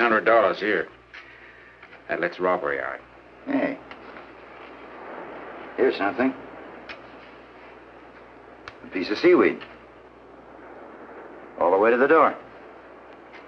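A man talks in a low, tense voice close by.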